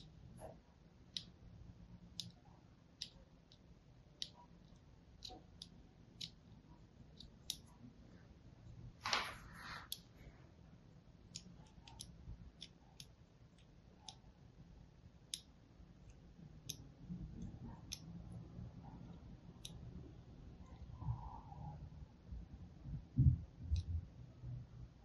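A sharp blade scrapes and carves into a bar of soap with soft crisp clicks.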